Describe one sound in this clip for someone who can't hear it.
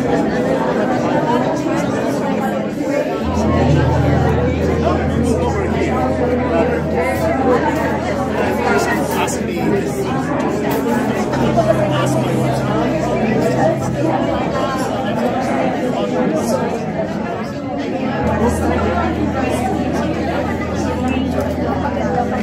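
Many men and women chatter at once in a busy, echoing hall.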